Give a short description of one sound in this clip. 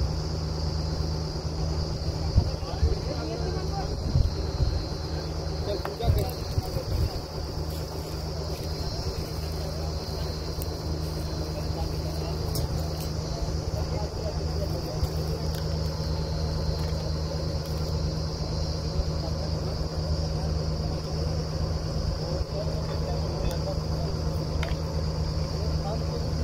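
Men talk to each other nearby.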